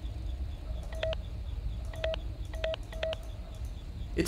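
An electronic keypad beeps.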